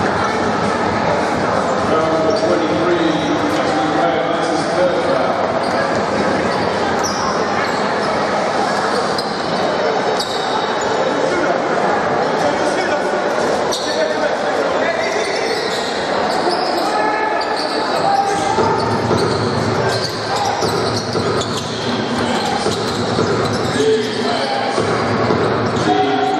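A large crowd murmurs and cheers in an echoing indoor hall.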